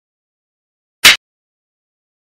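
A clapperboard snaps shut with a sharp clack.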